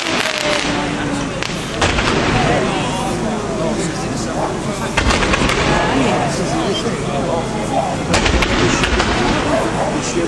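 Firework rockets whoosh and hiss as they shoot upward.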